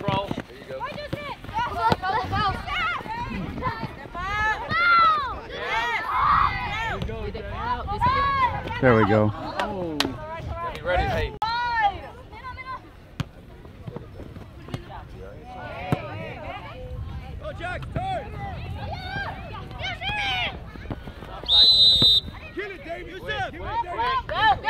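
Children and adults shout across an open field.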